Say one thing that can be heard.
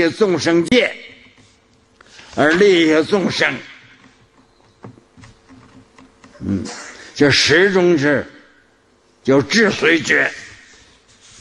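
An elderly man speaks slowly and calmly into a microphone, with pauses between phrases.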